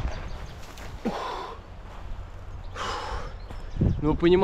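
A young man breathes hard while climbing.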